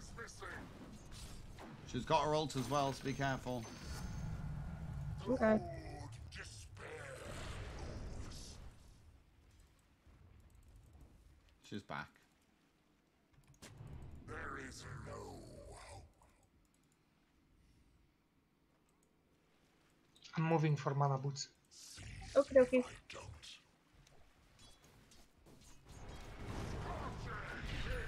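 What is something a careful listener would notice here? Game spells crackle and explode during a fight.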